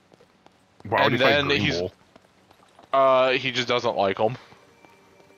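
Footsteps patter quickly on stone paving.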